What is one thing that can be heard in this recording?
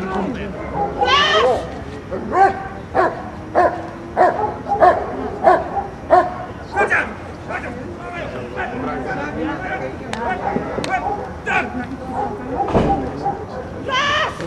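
A man shouts short, sharp commands outdoors.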